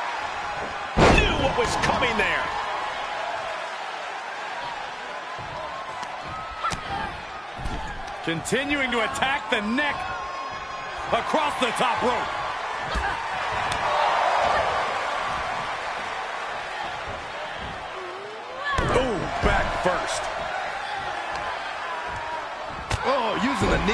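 Bodies slam heavily onto a ring mat.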